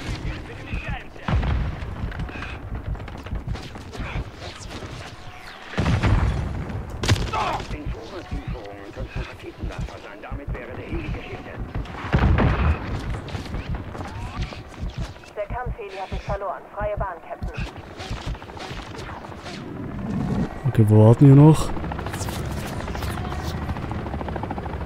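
Gunfire bursts loudly in short volleys.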